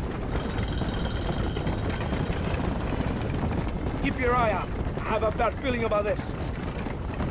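Horse hooves clop on dirt.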